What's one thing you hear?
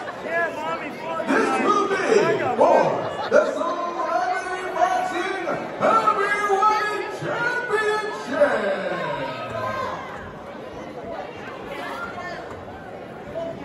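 A crowd of men and women shout and yell excitedly nearby.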